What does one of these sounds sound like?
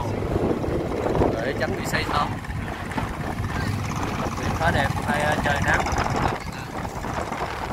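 A small boat's motor putters nearby.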